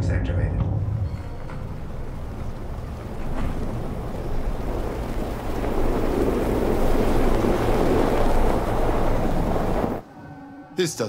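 A car engine hums as it approaches slowly over snow.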